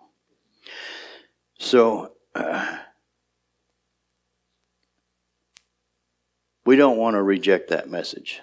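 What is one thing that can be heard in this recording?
A man speaks with emphasis into a microphone, with pauses.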